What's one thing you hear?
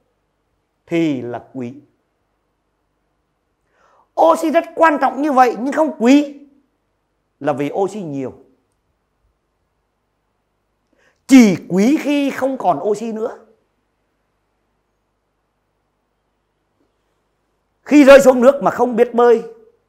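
A man lectures with animation into a close microphone, in short bursts with pauses.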